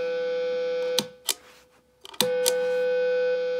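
A pedal switch clicks a few times.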